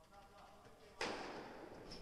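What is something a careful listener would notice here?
A tennis ball is struck hard with a racket, echoing through a large hall.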